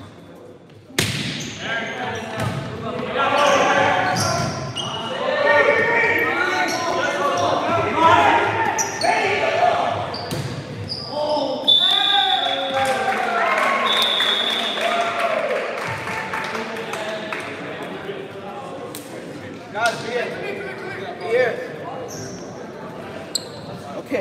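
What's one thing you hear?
Young men shout and call out across a large echoing gym.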